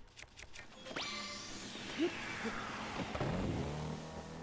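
A shimmering magical sound sweeps downward.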